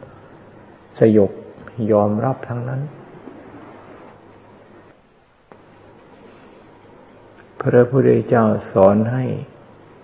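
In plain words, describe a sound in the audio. An elderly man speaks calmly and slowly, close to a microphone.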